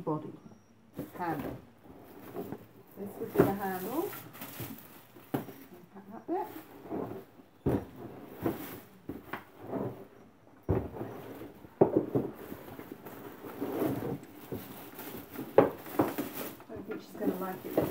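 Plastic wrapping rustles and crinkles as it is handled.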